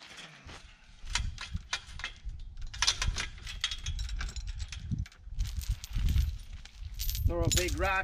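A metal chain clinks and rattles as it is handled.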